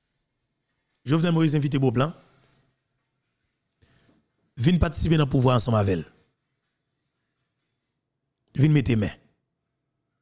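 A man speaks calmly and closely into a microphone in short bursts.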